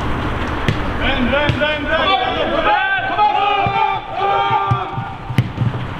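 Young men shout to each other across an open pitch.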